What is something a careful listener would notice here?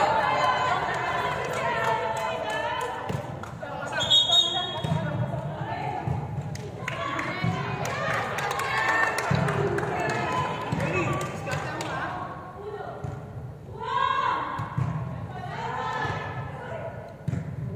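Young women chatter and call out in a large echoing hall.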